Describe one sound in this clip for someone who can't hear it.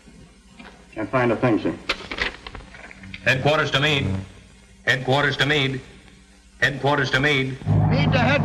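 A man speaks into a microphone with urgency.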